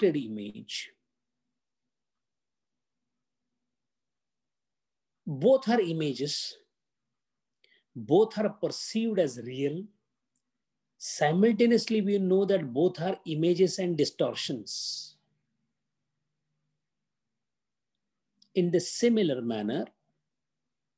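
An elderly man speaks calmly over an online call, in bursts with long pauses.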